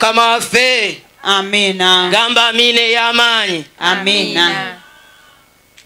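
A man sings loudly into a microphone, heard through loudspeakers outdoors.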